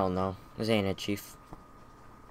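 A young man speaks briefly and close by.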